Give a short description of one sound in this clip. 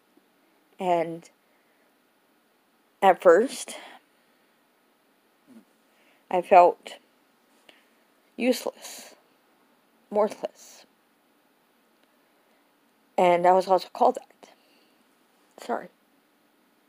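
A middle-aged woman speaks close up in short bursts, with pauses.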